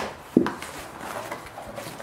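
Cardboard flaps rustle and scrape.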